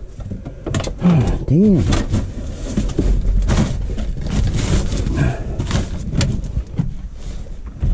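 A boot stomps down on wood and crumpled paper with crunching thuds.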